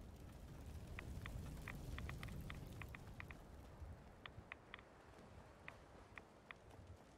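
Footsteps tap lightly on hard pavement.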